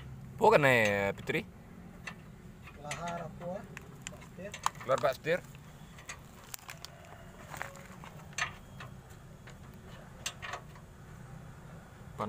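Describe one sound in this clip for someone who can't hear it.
A wrench clinks against metal under a vehicle.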